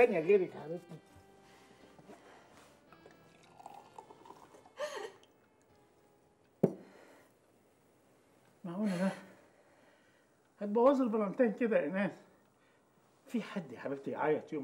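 A young woman sobs quietly.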